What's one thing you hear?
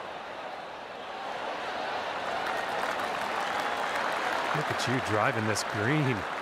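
A crowd cheers and applauds, growing louder.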